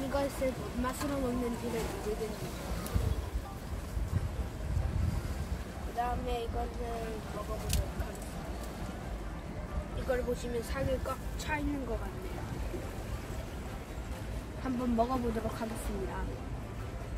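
A young boy talks quietly nearby.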